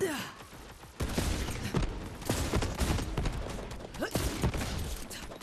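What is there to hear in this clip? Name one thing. Rapid automatic gunfire from a video game bursts out.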